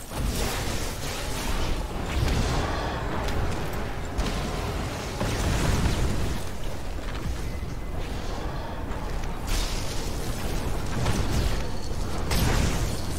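Wind rushes past during a fast glide.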